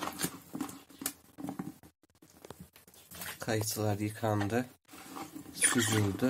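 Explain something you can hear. Hands shuffle pieces of fruit in a plastic basin.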